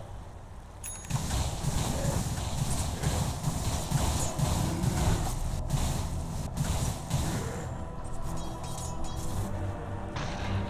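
Magical spell effects whoosh and crackle in a fight.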